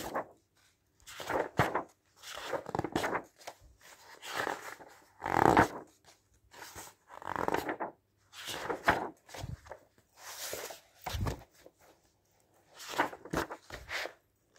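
Glossy magazine pages rustle and swish as they are turned.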